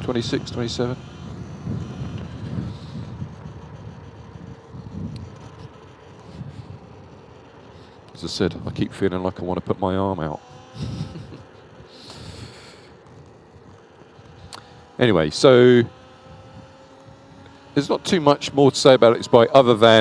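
Wind rushes steadily past a moving motorbike.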